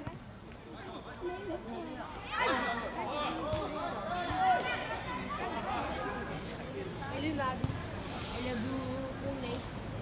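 A crowd of men and women shout and cheer close by outdoors.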